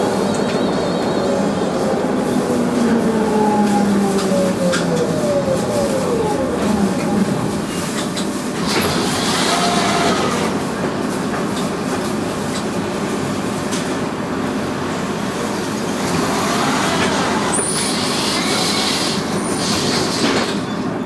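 Street traffic rumbles steadily outdoors.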